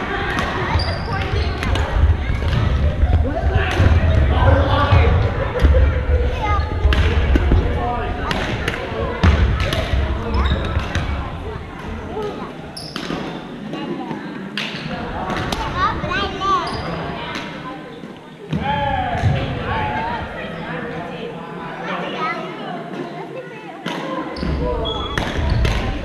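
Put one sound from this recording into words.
Shoes squeak on a wooden gym floor.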